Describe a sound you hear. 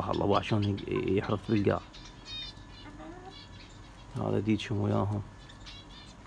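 A hen squawks loudly in distress.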